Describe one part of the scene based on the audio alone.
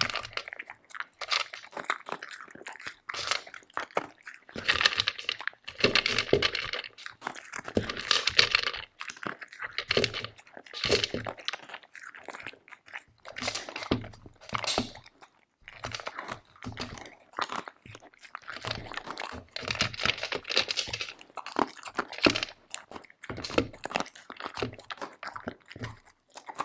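A dog crunches dry kibble close up.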